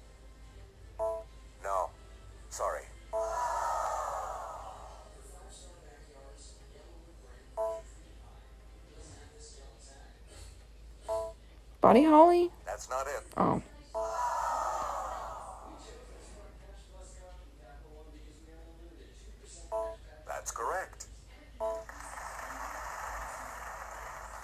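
Game sound effects and jingles play from a small handheld console speaker.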